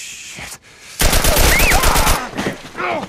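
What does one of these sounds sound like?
A gun fires a rapid burst.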